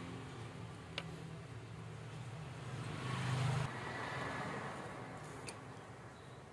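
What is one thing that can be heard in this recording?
Small metal parts click and tap against each other.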